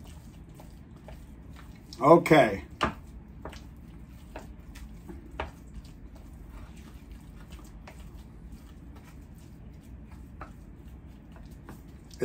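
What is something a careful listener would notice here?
A spoon scrapes and mashes food in a bowl.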